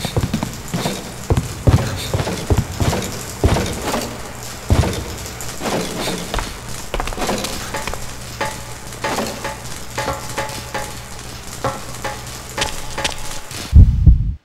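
Footsteps thud on a metal walkway.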